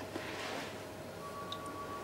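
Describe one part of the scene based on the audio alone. A young woman sobs quietly close by.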